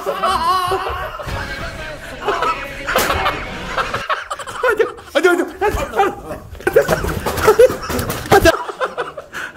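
Feet thump and shuffle on the floor during a scuffle.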